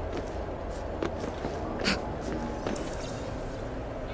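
Hands scrape and tap on stone while climbing a wall.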